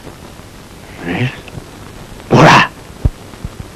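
A man cries out loudly, close by.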